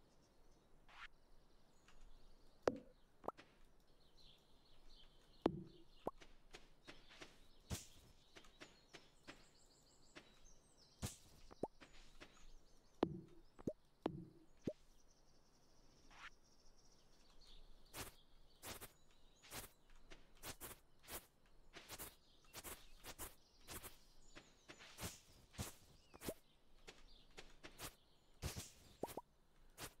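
Footsteps patter quickly on the ground.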